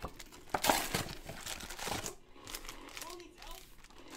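Cardboard tears as a box is torn open.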